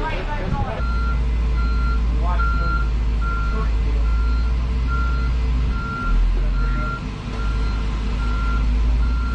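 A truck's backup alarm beeps as the truck reverses.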